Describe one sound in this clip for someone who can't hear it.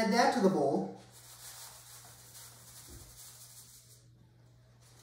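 Flour sifts softly into a bowl.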